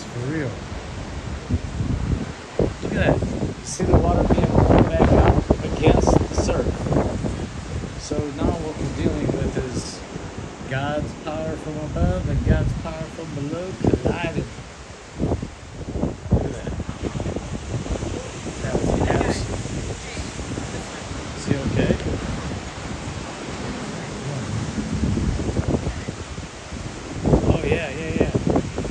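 Waves break and wash onto a sandy shore.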